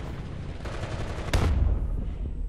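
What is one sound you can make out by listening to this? A rifle fires a single loud shot with a short echo.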